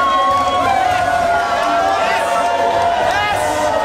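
A crowd of men and women cheers loudly nearby.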